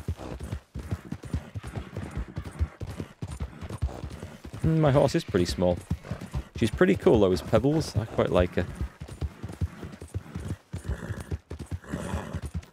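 Horse hooves thud steadily on a dirt track.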